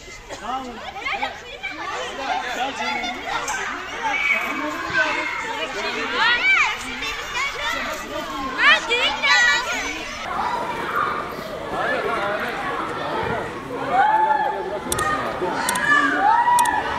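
A crowd murmurs and talks outdoors.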